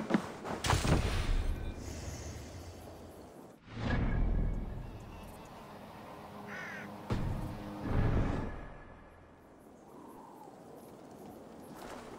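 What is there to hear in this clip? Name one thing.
Leaves rustle as berries are picked from a bush.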